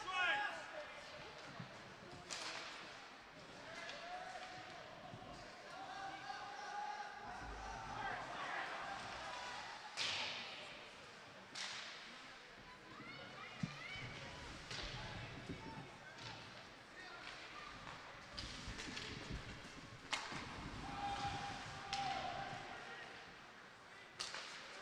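A crowd murmurs and cheers in an echoing rink.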